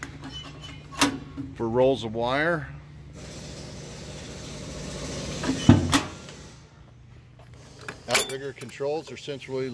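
A metal latch clicks open on a compartment door.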